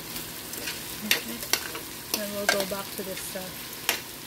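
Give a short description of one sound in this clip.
A metal utensil clinks and scrapes against a pan.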